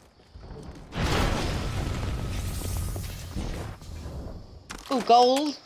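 A heavy capsule roars down and crashes to the ground.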